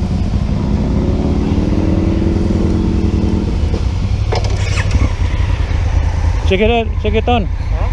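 A motorcycle engine rumbles and hums close by.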